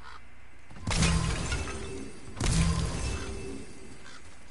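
Heavy blows strike with a ringing crash.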